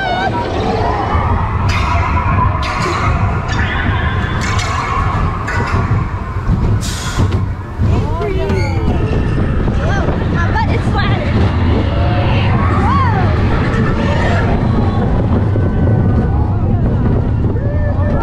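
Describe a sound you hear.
A ride car rumbles along a track.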